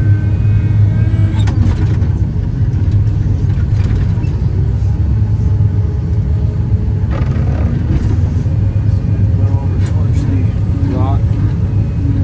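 A heavy diesel engine rumbles loudly and steadily from inside a cab.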